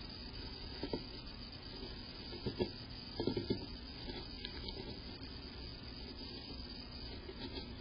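A small bird's wings flutter briefly.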